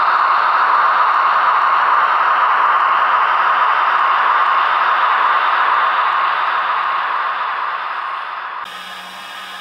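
A small electric motor whirs steadily as a model train rolls along the track.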